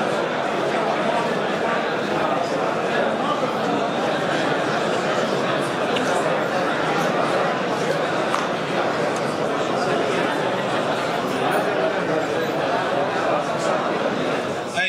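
A large crowd of men murmurs and chatters in a big, echoing hall.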